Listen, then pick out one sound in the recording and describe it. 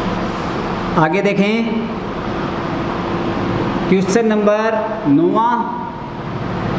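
A young man speaks loudly nearby.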